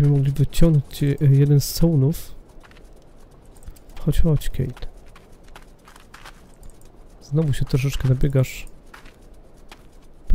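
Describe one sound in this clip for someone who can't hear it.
Footsteps tread on wet, muddy ground.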